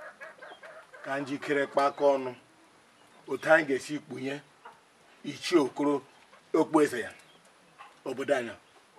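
A middle-aged man speaks slowly and gravely, close by.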